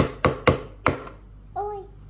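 A small plastic hammer taps sharply on hard plaster.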